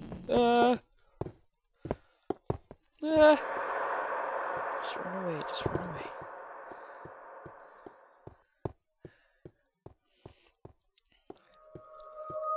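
Footsteps tap on a stone floor at a steady pace.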